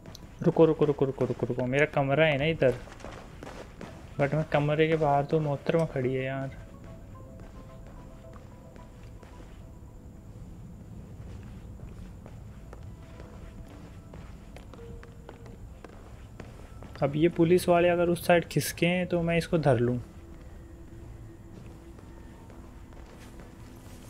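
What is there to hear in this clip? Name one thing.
Footsteps pad softly across a carpeted floor.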